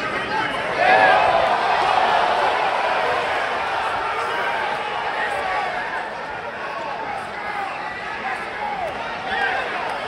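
A large crowd cheers and shouts loudly in a big echoing hall.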